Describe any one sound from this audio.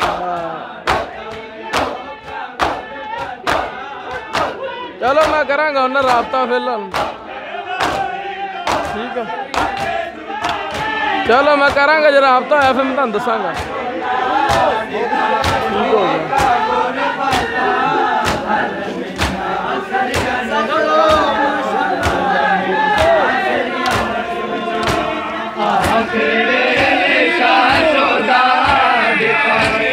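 Men beat their bare chests with their hands in a steady rhythm.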